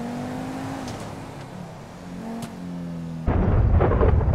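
A sports car engine hums steadily as the car drives along.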